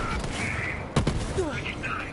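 An explosion bursts with a crackle.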